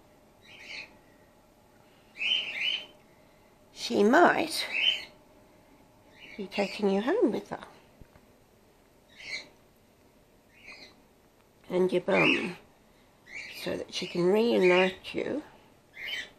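A small bat squeaks and chitters up close.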